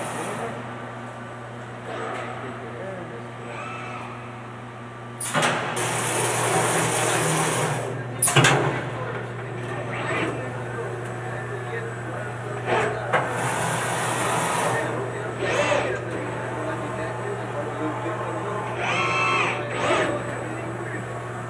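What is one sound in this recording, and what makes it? A robotic arm whirs and hums steadily as it moves.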